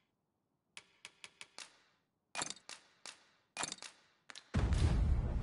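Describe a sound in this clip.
Menu selections click and chime in quick taps.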